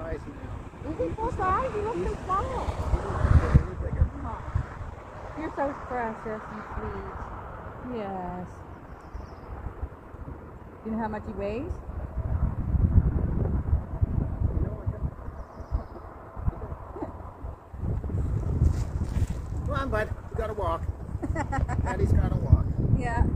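A woman talks in a high, coaxing voice close by, outdoors.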